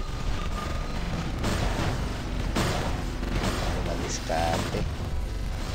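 Heavy metal footsteps stomp steadily.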